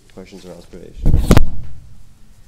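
A loud thump sounds on a microphone.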